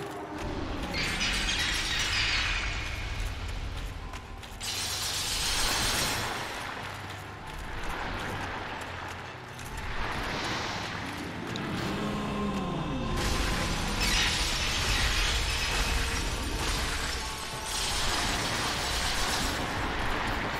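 Icy breath blasts with a loud hiss.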